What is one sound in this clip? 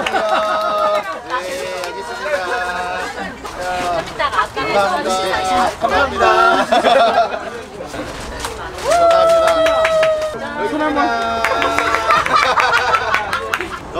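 Women laugh and chatter nearby.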